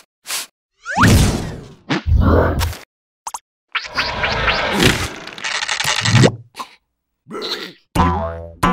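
A large balloon squeaks and bounces.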